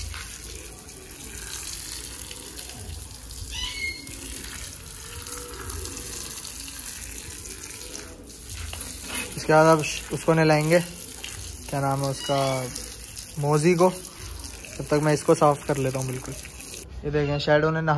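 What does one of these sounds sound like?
Water from a hose splashes onto a wet floor.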